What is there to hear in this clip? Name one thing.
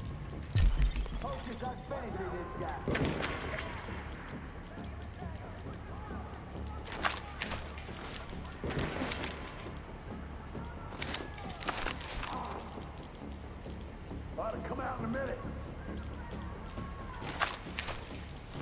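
Gunshots crack in short bursts with echoing tails.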